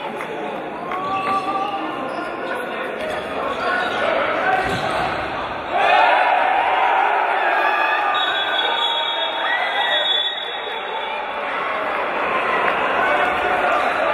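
Players' shoes squeak sharply on the court floor.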